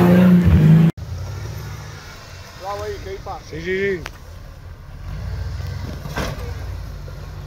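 An off-road vehicle's engine rumbles low and steady as it crawls over rocks.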